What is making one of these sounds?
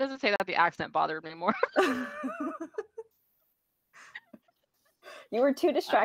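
Women laugh through an online call.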